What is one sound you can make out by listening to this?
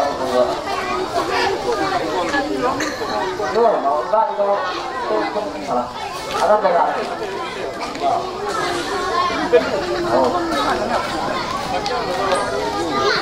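A crowd of men and women talk and call out at once, close by and outdoors.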